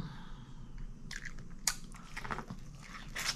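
A woman bites into corn on the cob with a crunch.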